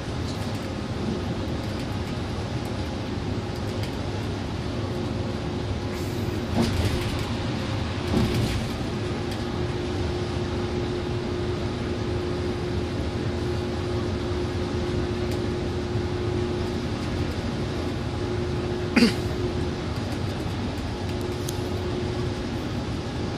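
A bus engine hums steadily from inside.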